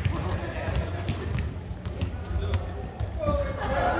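A volleyball bounces on a wooden floor in a large echoing hall.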